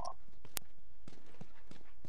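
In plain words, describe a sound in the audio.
Footsteps run across a hard floor.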